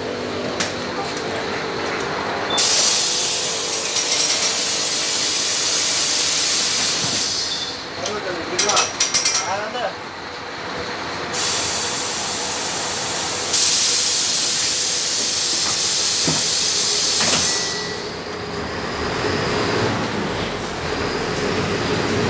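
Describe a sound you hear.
A bus engine hums steadily from inside the cab.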